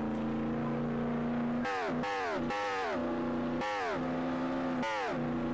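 A sports car engine hums steadily, then revs high and drops in pitch again and again as it shifts gears.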